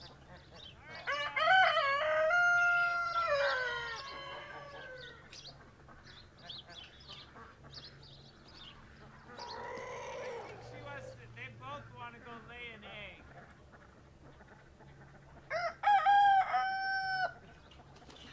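A rooster crows loudly nearby.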